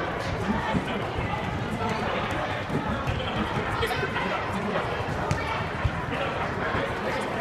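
Young girls chatter and call out in a large echoing hall.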